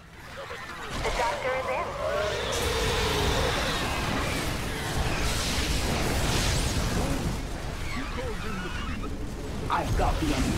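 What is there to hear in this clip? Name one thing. Rapid gunfire rattles in a chaotic battle.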